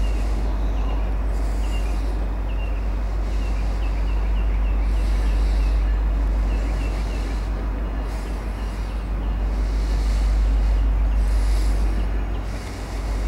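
A diesel locomotive engine rumbles loudly as a freight train approaches.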